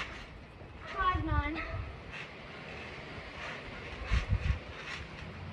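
A child's feet thump on a trampoline mat.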